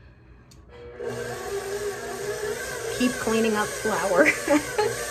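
A stand mixer whirs steadily.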